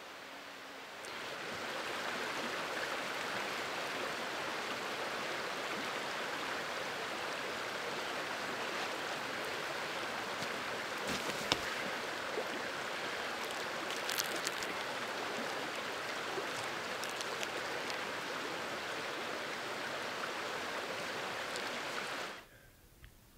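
A stream of water rushes and gurgles nearby.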